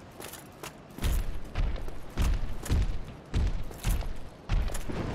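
Heavy thuds boom from a large creature walking.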